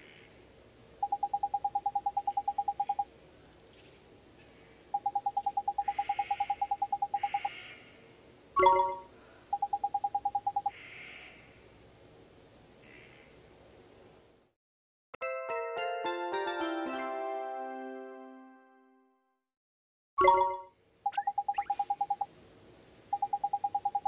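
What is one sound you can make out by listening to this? Rapid electronic blips chatter as dialogue text types out.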